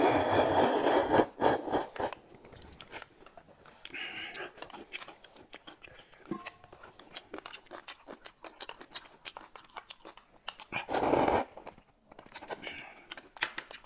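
A young woman sips soup with a spoon close by.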